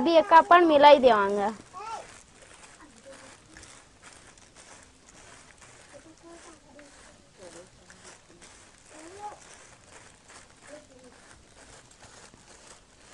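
Plastic wrap crinkles and rustles as a hand presses on it.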